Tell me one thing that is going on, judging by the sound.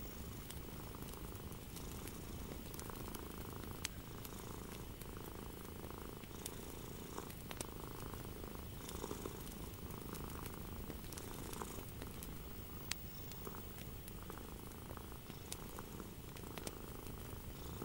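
Fingernails tap and click against paper.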